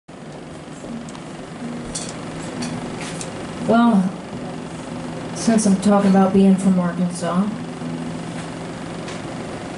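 An acoustic guitar is strummed through a loudspeaker.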